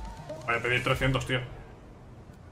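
A young man speaks loudly with animation, close to a microphone.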